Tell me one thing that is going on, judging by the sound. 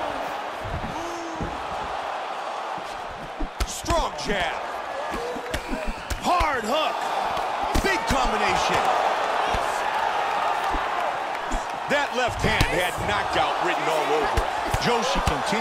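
Kicks and punches land with sharp thuds.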